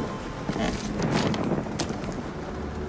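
A shoe steps softly on creaking wooden floorboards.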